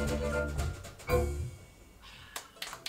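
A band plays a final chord that rings out and stops.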